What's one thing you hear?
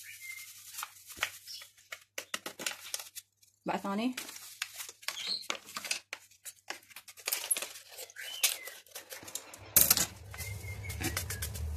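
Hands rub and squeeze soft food in a plastic bowl.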